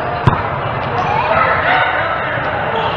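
Young adult players call out to each other in an echoing indoor hall.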